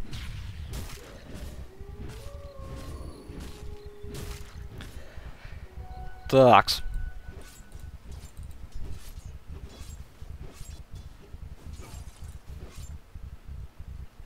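Weapons clash and thud in a game fight.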